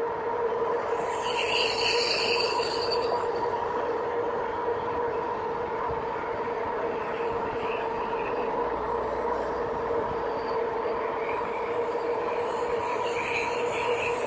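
Wind rushes past in a steady roar.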